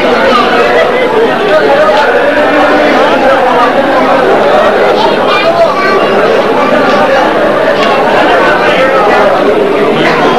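A large crowd of men chants and shouts loudly.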